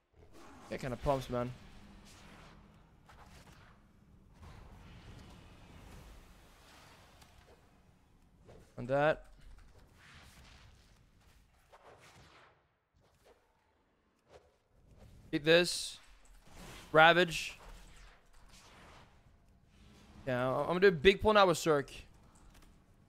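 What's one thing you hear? A young man speaks with animation close to a microphone, in short bursts.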